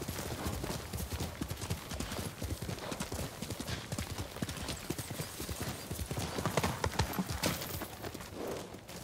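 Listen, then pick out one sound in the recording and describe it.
A horse gallops, hooves pounding on the ground.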